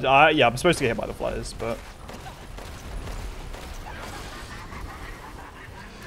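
A shotgun fires in sharp blasts.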